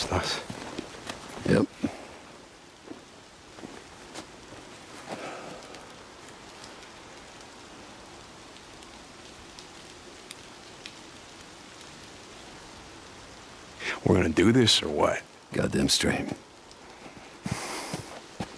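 A man speaks calmly and up close.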